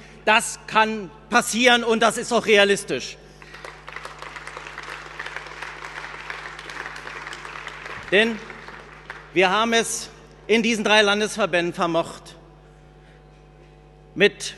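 A middle-aged man speaks forcefully into a microphone, heard over loudspeakers in a large hall.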